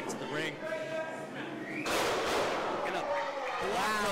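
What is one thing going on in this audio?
A wrestler's body slams hard onto the ring mat.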